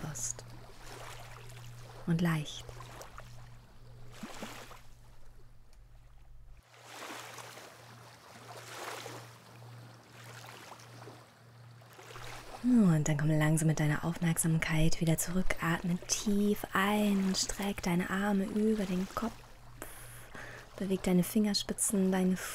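Small waves lap gently on the shore.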